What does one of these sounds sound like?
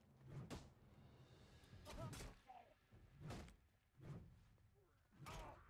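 Swords clang sharply against metal shields, again and again.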